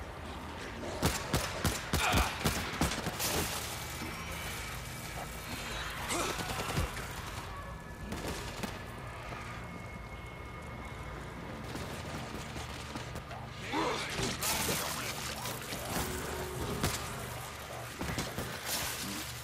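Rapid gunshots ring out in short bursts.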